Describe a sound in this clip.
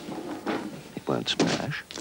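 Paint splashes heavily onto a canvas on the floor.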